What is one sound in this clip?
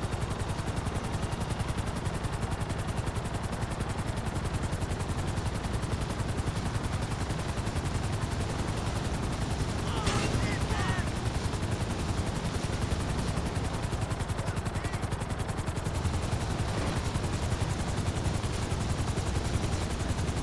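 Helicopter rotor blades chop steadily and rapidly overhead.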